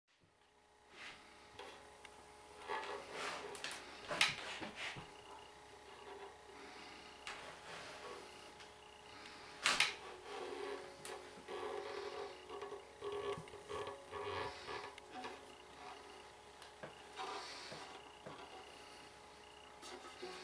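Hands knock and rub against a wooden guitar.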